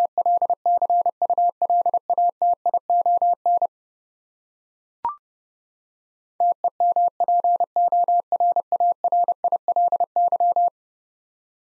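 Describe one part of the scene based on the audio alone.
A telegraph key taps out rapid Morse code beeps.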